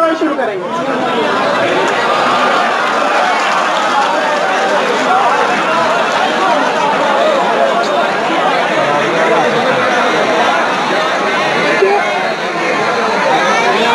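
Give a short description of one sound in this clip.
A dense crowd of men and women talks and shouts all at once, close by.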